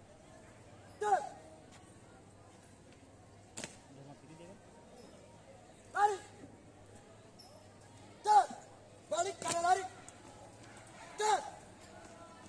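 A young man shouts short marching commands nearby.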